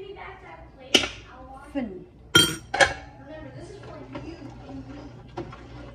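A metal pot lid clanks.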